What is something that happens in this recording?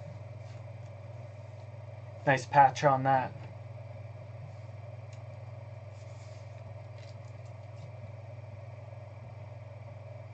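Hard plastic clicks and rustles in someone's hands.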